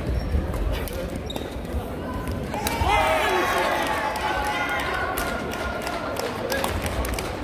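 Shuttlecocks are struck with sharp pops of rackets in a large echoing hall.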